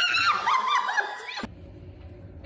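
An elderly woman exclaims with delight close by.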